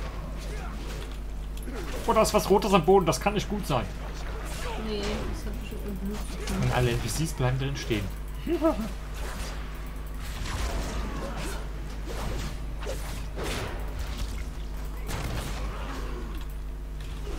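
Magic blasts and weapon strikes clash in a fight.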